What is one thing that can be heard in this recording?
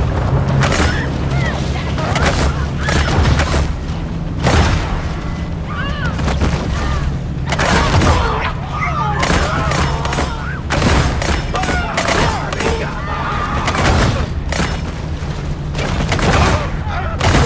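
Heavy crashes and thuds strike a boat's hull.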